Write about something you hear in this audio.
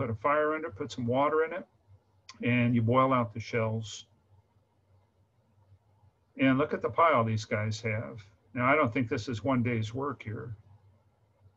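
A middle-aged man speaks calmly through an online call microphone, pausing between phrases.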